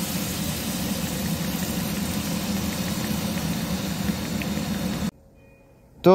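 Bacon sizzles and crackles in a hot pan.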